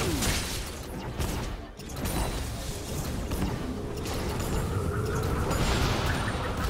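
Spells whoosh and crackle in a video game battle.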